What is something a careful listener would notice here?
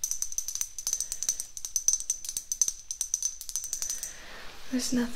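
Fingernails tap rapidly on a hard plastic object close by.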